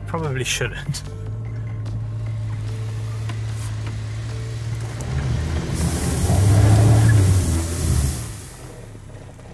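A car engine revs hard and loud.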